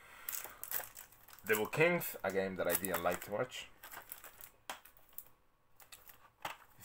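Plastic game cases click and rattle as they are handled.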